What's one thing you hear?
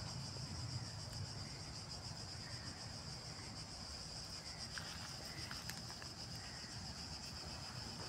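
Leaves rustle as a hand brushes through weedy plants.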